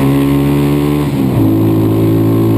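A motorcycle engine briefly drops in pitch during a gear change, then settles again.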